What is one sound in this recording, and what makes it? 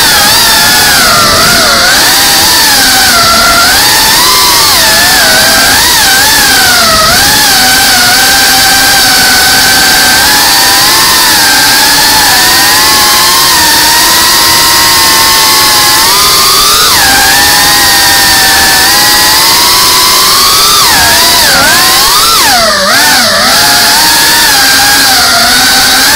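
A small drone's motors whine loudly and steadily, rising and falling in pitch as it flies.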